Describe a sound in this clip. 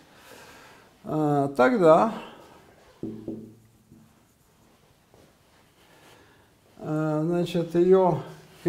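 An elderly man speaks slowly in a lecturing tone, in short phrases with pauses.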